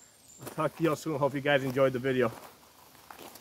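A man talks calmly and close by, outdoors.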